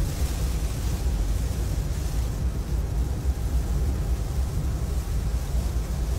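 A windshield wiper swishes across the glass.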